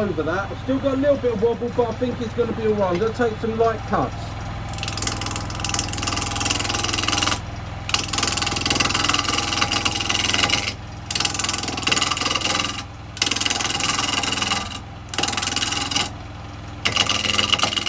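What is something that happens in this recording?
A wood lathe hums steadily.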